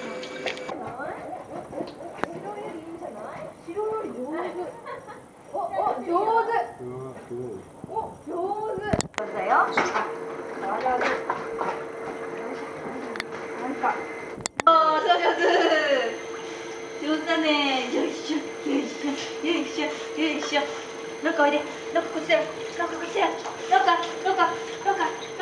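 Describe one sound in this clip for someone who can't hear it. A woman talks nearby in a soft, cheerful voice.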